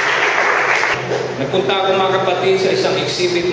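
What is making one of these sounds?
A middle-aged man speaks steadily into a microphone through a loudspeaker.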